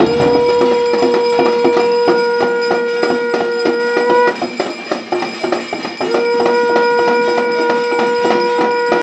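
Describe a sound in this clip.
A conch shell is blown in long, steady blasts.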